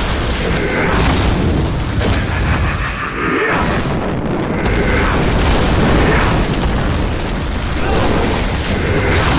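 Magic spells crackle and explode in a game.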